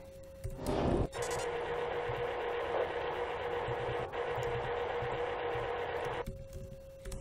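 A steady electronic static hiss plays.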